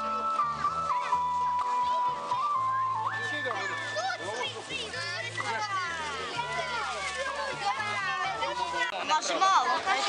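Children chatter excitedly close by.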